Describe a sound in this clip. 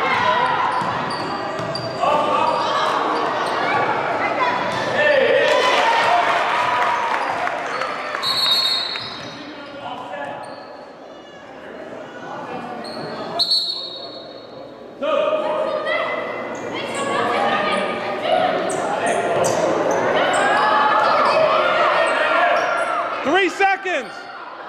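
Young players shout and call out across an echoing gym.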